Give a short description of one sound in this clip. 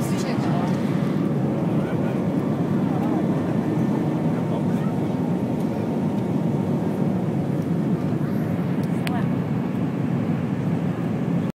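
The jet engines of an airliner taking off roar, heard from inside the cabin.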